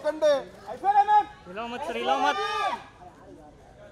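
A woman calls out loudly and brightly nearby.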